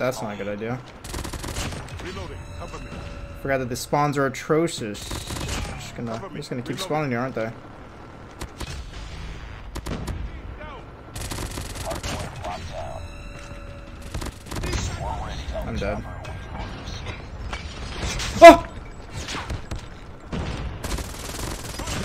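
Gunshots crack in quick bursts from a video game.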